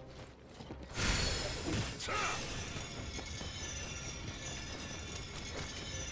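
Fire crackles and roars after a blast.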